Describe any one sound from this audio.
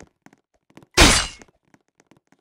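A loud whooshing burst sounds as a knife is drawn.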